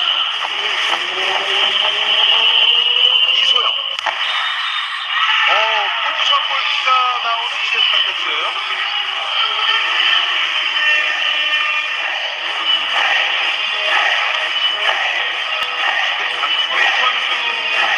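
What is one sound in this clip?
A large crowd cheers and chants loudly in a big echoing hall.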